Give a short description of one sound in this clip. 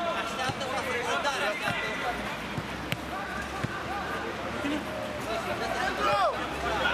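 Players shout and call out to each other across an outdoor pitch.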